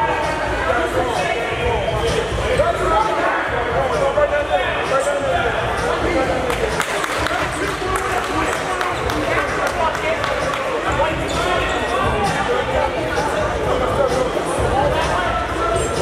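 A crowd of spectators chatters throughout in an echoing gym.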